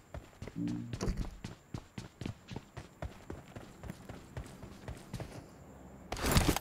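Footsteps run quickly over the ground.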